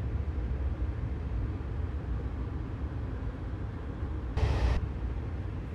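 A train's wheels clatter over rail joints.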